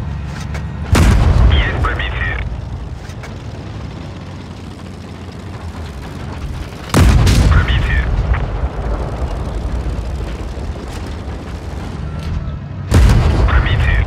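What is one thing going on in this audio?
A tank's heavy gun fires with a loud boom.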